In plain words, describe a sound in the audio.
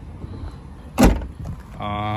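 A car's rear hatch slams shut with a heavy thump.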